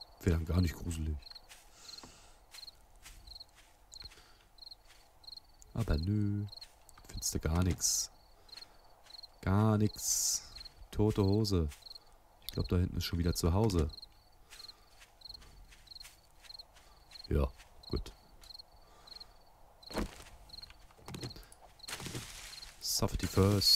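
Footsteps tread steadily through grass.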